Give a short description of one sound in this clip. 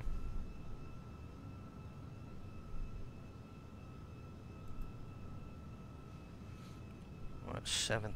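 Jet engines rumble steadily.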